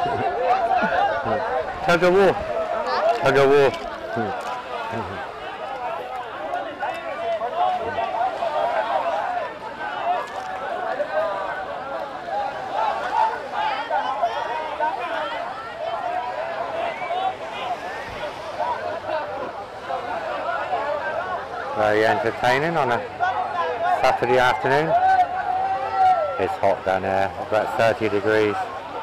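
A crowd of young men and women chatters and shouts outdoors.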